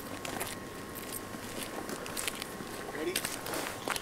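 Footsteps crunch on snow outdoors.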